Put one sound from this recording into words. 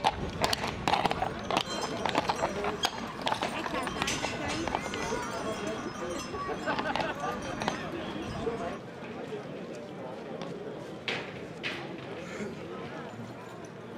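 A crowd murmurs and chatters outdoors nearby.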